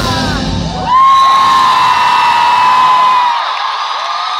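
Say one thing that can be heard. Amplified music plays with a heavy beat.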